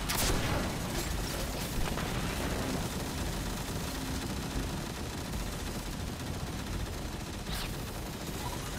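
Gunshots crack sharply a few times.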